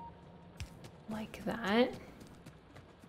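A young woman speaks briefly close to a microphone.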